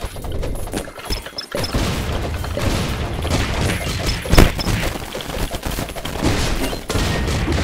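Rapid game hit and attack sound effects clatter and burst.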